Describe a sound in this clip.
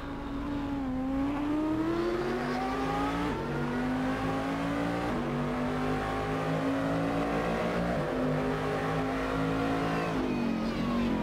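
A racing car engine revs high, accelerating and shifting up through the gears.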